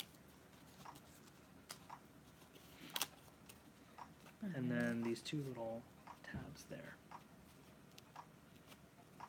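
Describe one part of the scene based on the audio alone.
Cardboard rustles and taps as it is handled.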